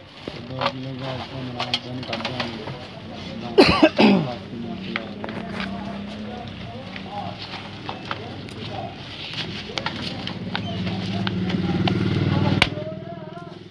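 Metal and plastic parts click and knock as they are handled.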